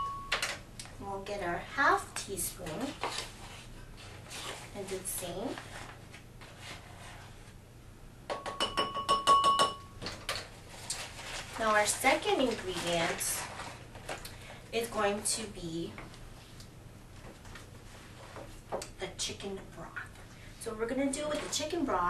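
A woman talks calmly and clearly, close by.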